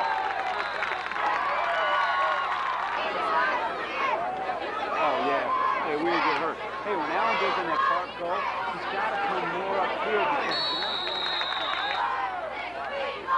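A crowd of young men shout and cheer outdoors.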